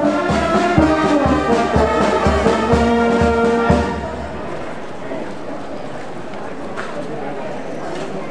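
A crowd of people walks along a street with shuffling footsteps.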